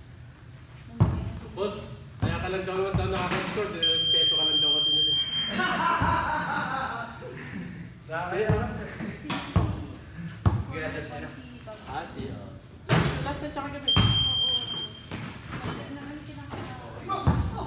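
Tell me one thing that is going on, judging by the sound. A basketball bounces with hollow thuds on the floor.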